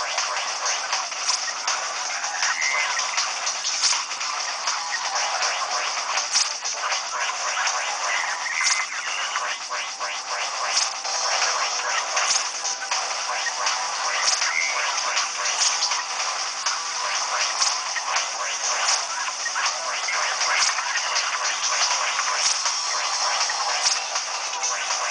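Rapid electronic gunfire blasts from a video game without pause.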